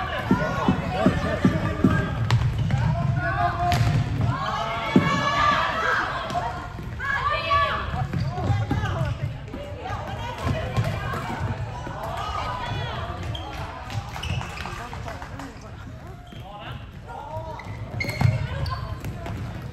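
Spectators nearby talk and call out loudly.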